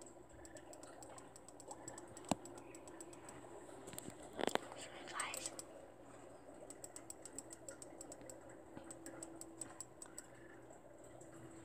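Bubbly electronic game sounds and soft ticks play through small speakers.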